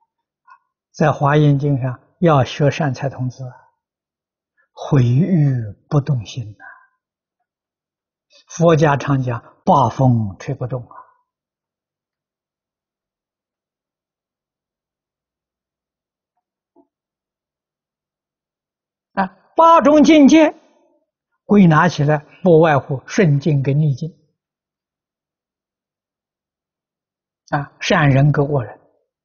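An elderly man speaks calmly and slowly into a microphone, with long pauses.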